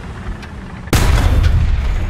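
A tank cannon fires with a loud boom.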